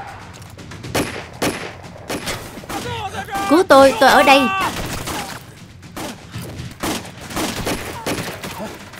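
Gunshots crack loudly.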